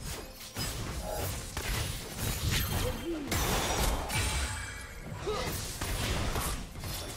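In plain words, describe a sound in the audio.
Spell effects whoosh and crackle in a fight.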